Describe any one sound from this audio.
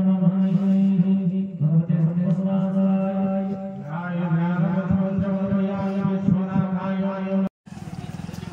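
A young man chants a prayer through a microphone.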